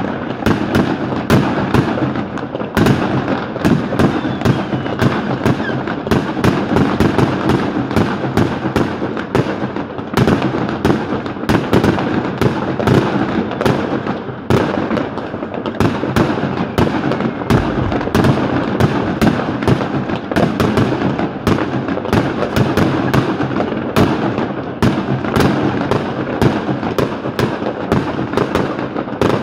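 Fireworks crackle and bang rapidly nearby.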